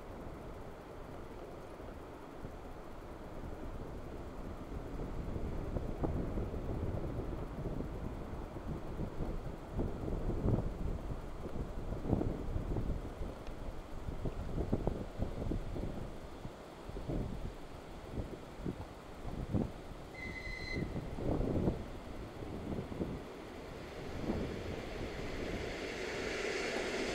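Wind gusts outdoors, buffeting loudly.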